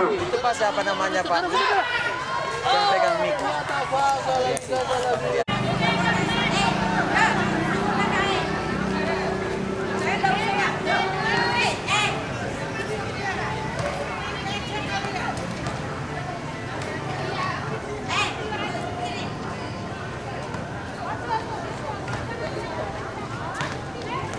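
A crowd of young people chatters and calls out outdoors.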